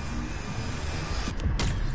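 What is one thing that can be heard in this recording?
A loud energy blast bursts and roars.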